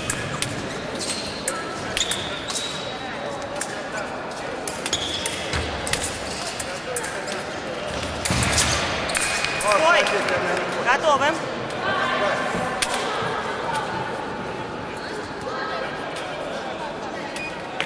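Sharp clicks of footwork echo in a large hall.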